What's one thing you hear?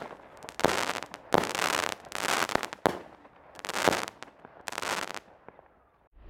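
Crackling stars pop and crackle after the bursts.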